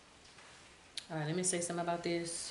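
A woman speaks close by, calmly.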